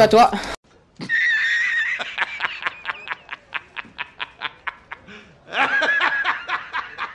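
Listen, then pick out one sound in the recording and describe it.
A middle-aged man laughs loudly and heartily.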